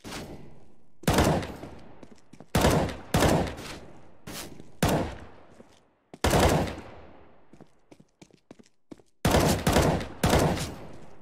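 Rifle shots crack in short bursts.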